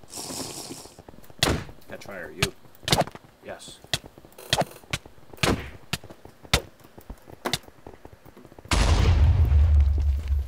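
Sword blows land with short, sharp hits.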